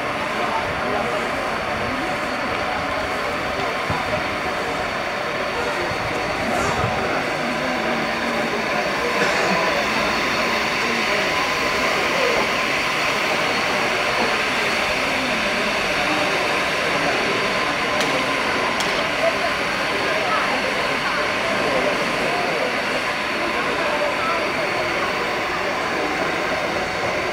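A racing bicycle whirs along a track.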